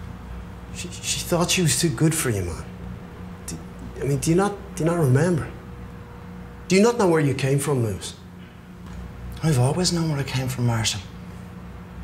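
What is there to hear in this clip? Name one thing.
A young man answers with some animation, close by.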